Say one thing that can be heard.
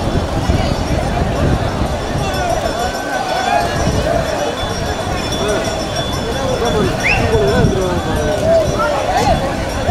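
Water splashes as people wade and play in a river.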